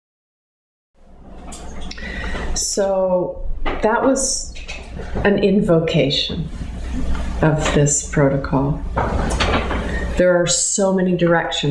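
A middle-aged woman speaks calmly and with animation, close to a microphone.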